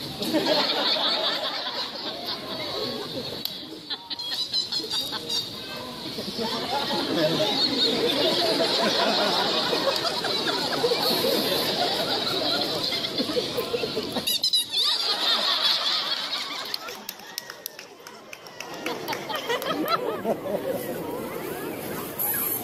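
A crowd of onlookers chatters and murmurs outdoors.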